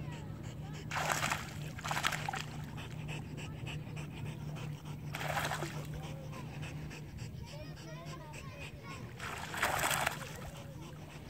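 Water splashes loudly in short bursts as a dog dives.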